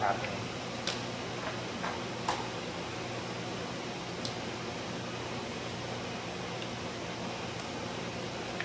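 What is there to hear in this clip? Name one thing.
A pipette clicks sharply now and then.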